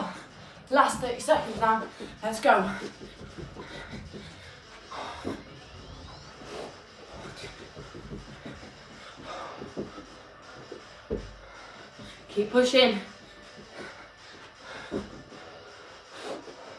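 Feet thud softly on a carpeted floor.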